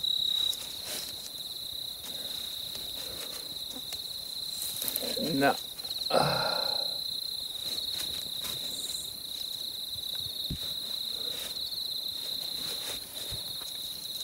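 A stick brushes and rustles through grass.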